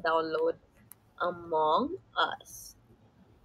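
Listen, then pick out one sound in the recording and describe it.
A young woman talks casually, close to a phone microphone.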